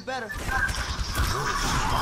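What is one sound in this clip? Gunshots and blasts crackle in a fast game fight.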